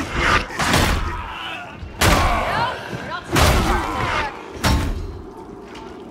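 Guns fire in loud, sharp bursts.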